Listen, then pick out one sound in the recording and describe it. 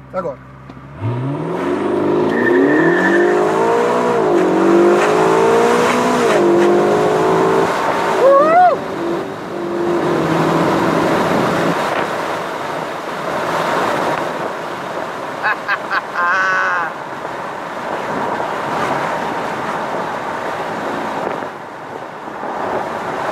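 Wind rushes past loudly in an open car.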